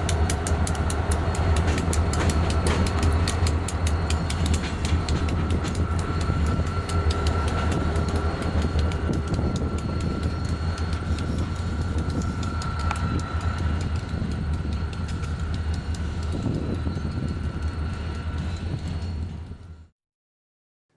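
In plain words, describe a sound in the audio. Diesel locomotives rumble loudly as a train rolls past and slowly moves away.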